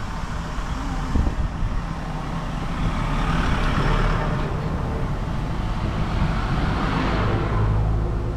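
A truck engine rumbles as it drives past close by.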